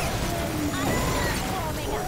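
Laser beams hum and crackle in a game fight.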